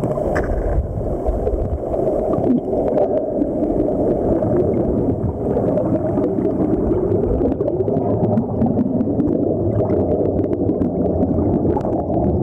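Air bubbles gurgle and rush underwater.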